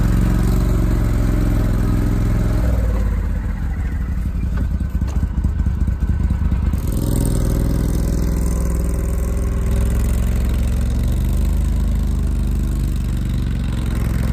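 A utility vehicle's engine hums steadily close by as it drives.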